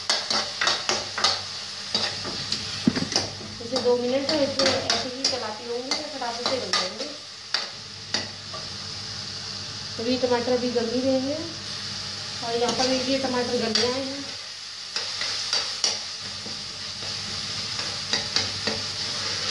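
A spoon scrapes against a frying pan.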